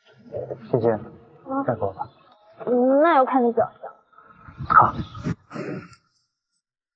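A young man speaks softly, up close.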